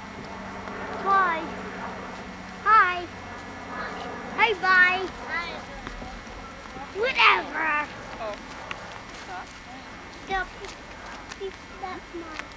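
A woman talks brightly close by.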